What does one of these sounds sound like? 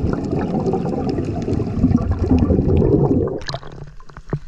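Air bubbles rumble and gurgle underwater from a diver's breathing.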